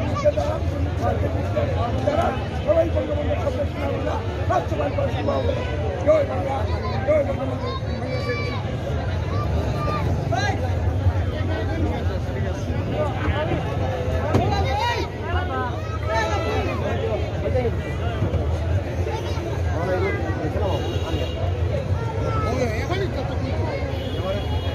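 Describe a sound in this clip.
A crowd of young men chatters outdoors.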